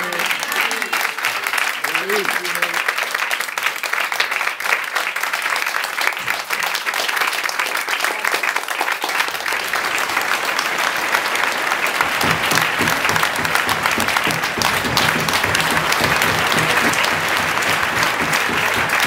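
An audience applauds loudly and steadily, growing fuller partway through.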